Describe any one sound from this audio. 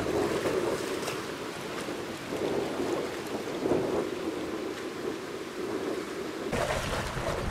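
Wind gusts loudly across choppy water.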